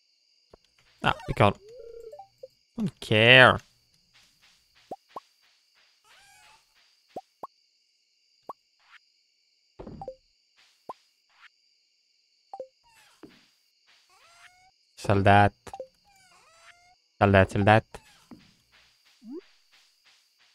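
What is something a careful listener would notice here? Short video game sound effects chime and pop now and then.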